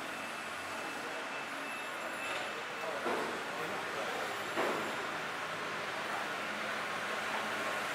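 A heavy fish scrapes and slides across a wet floor.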